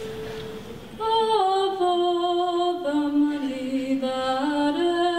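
A large young choir sings together in harmony.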